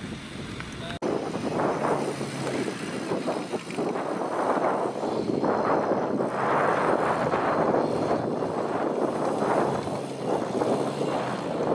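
A small car engine revs unevenly as the car climbs over rough ground.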